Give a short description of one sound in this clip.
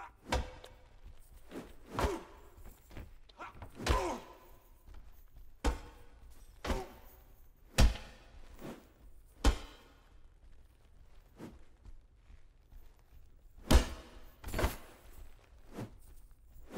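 Weapons strike and thud in repeated blows during a fight.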